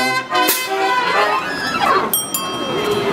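A brass band plays a loud held chord that stops.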